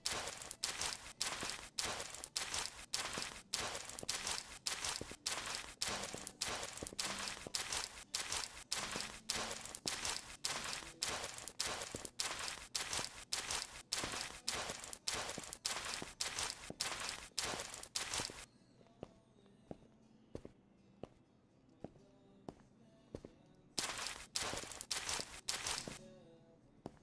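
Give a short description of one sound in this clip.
A mop scrubs a wooden floor with quick, repeated swishes.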